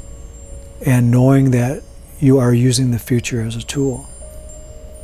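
A man chants in a deep, steady voice close by.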